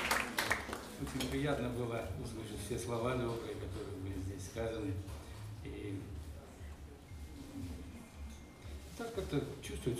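A man speaks calmly into a microphone, heard over loudspeakers.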